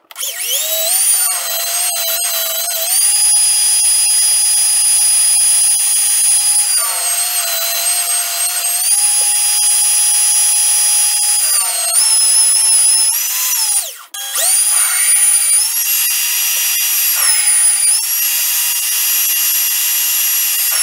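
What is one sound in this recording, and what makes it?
A cutting tool scrapes against spinning metal.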